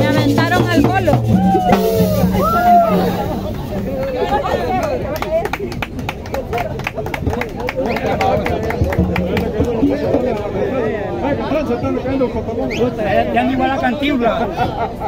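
A band plays lively music.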